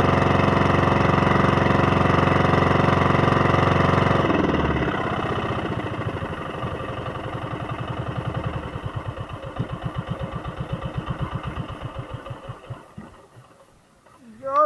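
Water rushes past a moving boat's hull.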